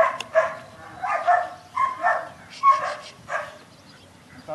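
A man gives commands to a dog in short, firm bursts outdoors.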